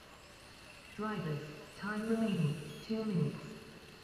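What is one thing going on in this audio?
A man speaks loudly in a large echoing hall.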